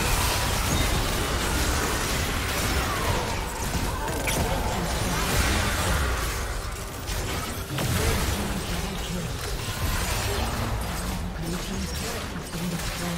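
Spell effects and weapon hits clash in a game battle.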